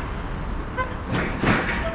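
An electric scooter rolls past close by.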